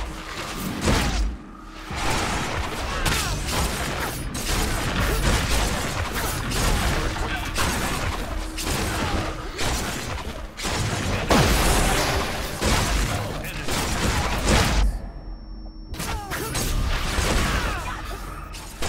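Magic spells whoosh and crackle during a fierce fight.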